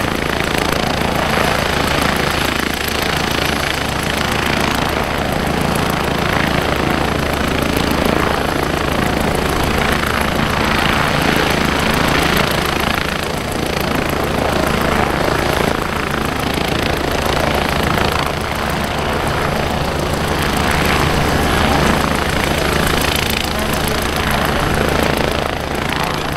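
An airship's engines drone steadily overhead.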